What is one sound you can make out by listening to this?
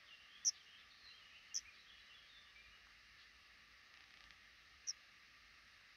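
Nestling birds cheep in short, high peeps close by.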